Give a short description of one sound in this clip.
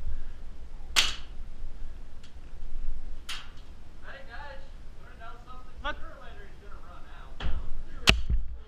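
Air guns fire sharp single shots nearby.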